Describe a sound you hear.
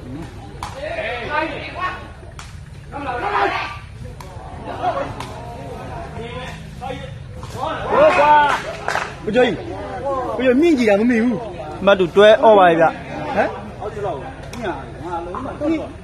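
A crowd of men chatters and calls out.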